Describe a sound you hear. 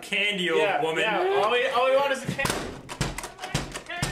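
A wooden door swings shut with a thud.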